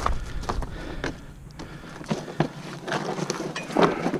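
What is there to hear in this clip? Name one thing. A cardboard box scrapes and rustles as a hand handles it.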